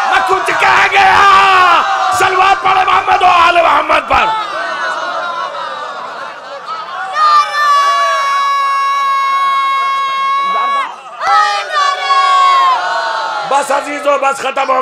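A man chants loudly and with passion through a microphone.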